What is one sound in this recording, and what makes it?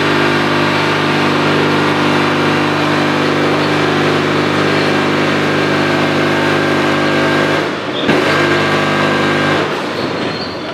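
A packing machine hums steadily.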